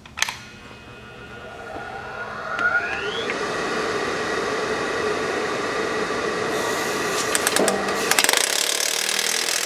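An electric tool motor spins up and then runs with a steady high whine.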